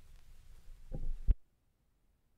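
A tonearm lifts off a record with a dull thump.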